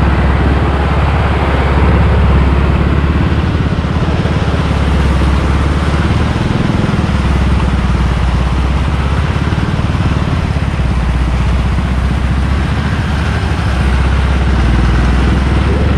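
Tyres churn through soft sand.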